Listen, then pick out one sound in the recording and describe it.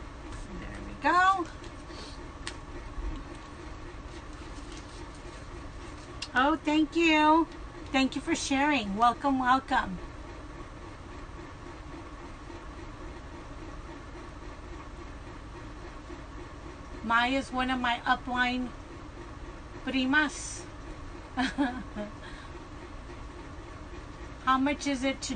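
A middle-aged woman talks close by, in short bursts with pauses.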